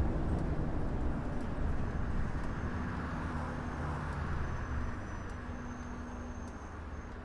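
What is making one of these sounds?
A bus engine hums low and steadily as the bus drives along, slowly growing quieter.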